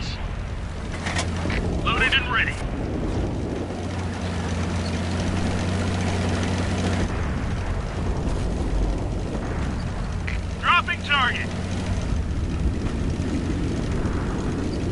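Tank tracks clatter over the ground.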